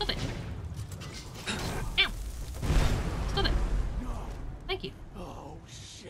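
Flames whoosh and roar in a fiery blast.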